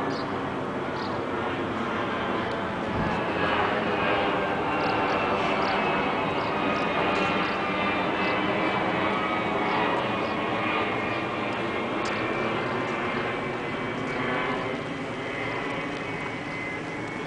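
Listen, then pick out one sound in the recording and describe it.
A jet airliner roars steadily overhead, its engines whining, then slowly fades.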